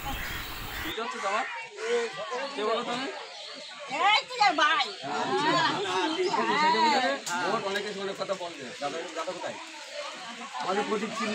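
A man speaks calmly to an elderly woman.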